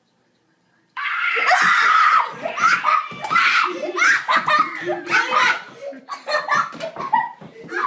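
A young boy screams loudly.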